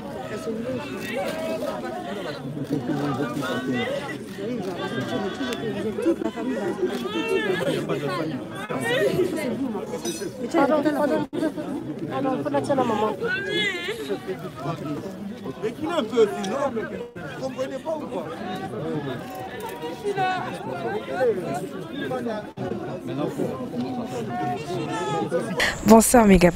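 A crowd of men and women talks and murmurs outdoors.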